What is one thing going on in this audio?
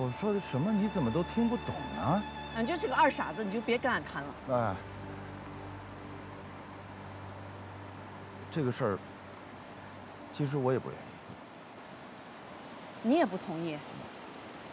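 A river rushes steadily in the background.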